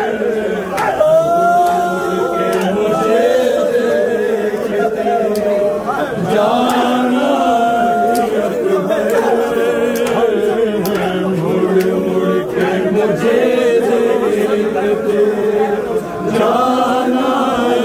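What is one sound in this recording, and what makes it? Men beat their chests in rhythm.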